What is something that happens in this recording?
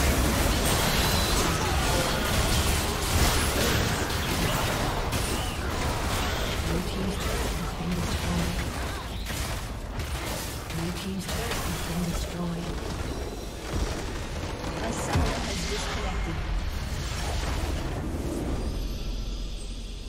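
Video game battle effects crash, whoosh and crackle.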